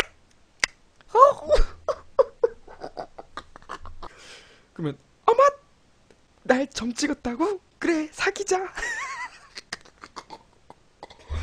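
A young man laughs into a desk microphone.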